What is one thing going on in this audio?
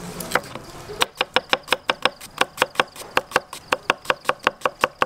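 A knife chops onion on a wooden board in quick, steady strokes.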